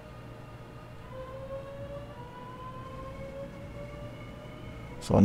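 A train's electric motor whines, rising in pitch as it speeds up.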